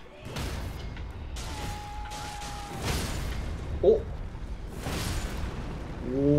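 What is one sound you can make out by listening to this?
Heavy weapon blows crash and thud in a game fight.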